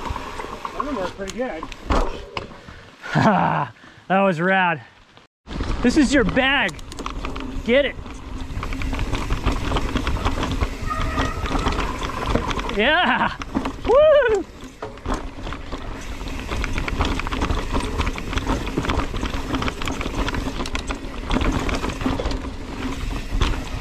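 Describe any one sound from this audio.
A mountain bike rattles over roots and rocks.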